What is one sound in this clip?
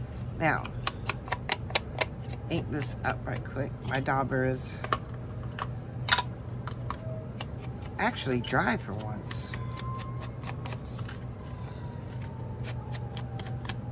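A small tool dabs and taps against paper.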